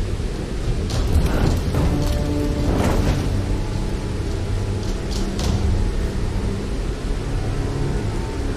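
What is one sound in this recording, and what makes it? A torch flame roars and crackles as it lights a fire.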